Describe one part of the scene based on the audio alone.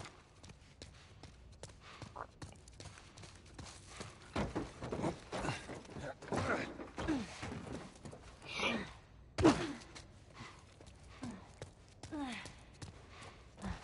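Footsteps crunch on debris.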